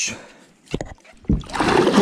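Water splashes and laps against the side of a boat.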